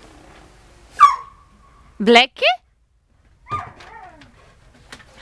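A dog yelps and whines sharply nearby.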